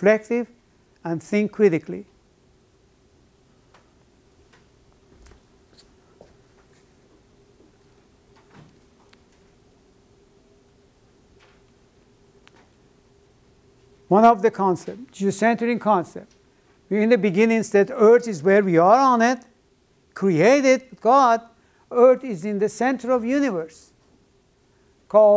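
An elderly man lectures calmly, pausing between phrases.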